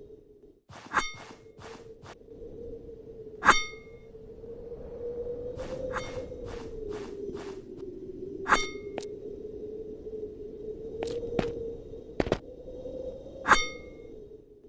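Metal spikes shoot out and clang with ringing blows.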